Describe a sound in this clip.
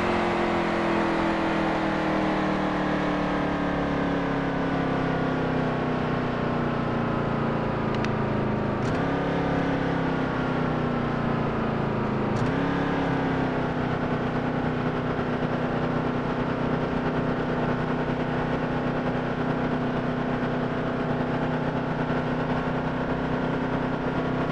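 A racing truck's engine drones steadily, easing down and then revving up again.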